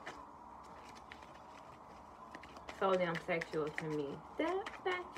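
Playing cards riffle and tap softly as they are shuffled.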